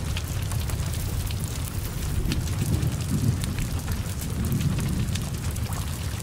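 Burning wood and metal crackle and pop in the flames.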